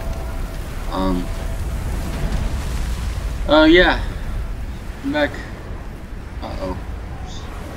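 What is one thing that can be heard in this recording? Wind blows steadily outdoors, low and rumbling.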